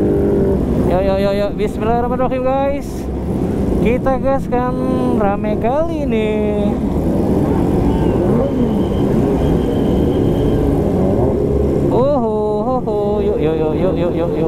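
A motorcycle engine revs up sharply several times.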